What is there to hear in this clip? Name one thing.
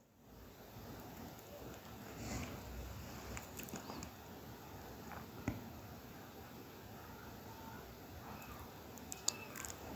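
Cloth rustles softly as it is unfolded.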